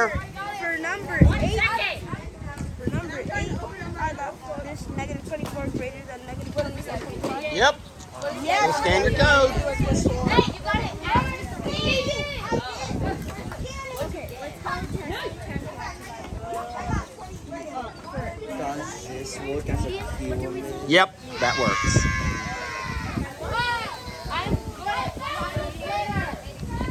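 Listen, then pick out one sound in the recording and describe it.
Children and young girls talk and chatter outdoors nearby.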